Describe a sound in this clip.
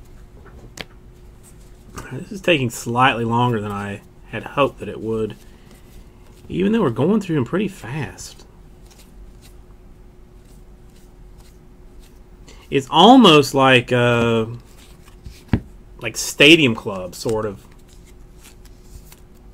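Trading cards flick and rustle as they are handled.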